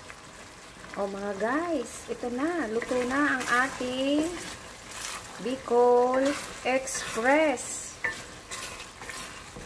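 A wooden spoon stirs and scrapes against a metal pan.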